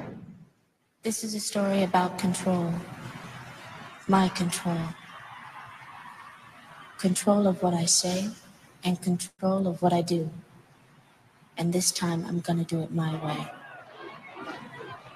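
A woman sings.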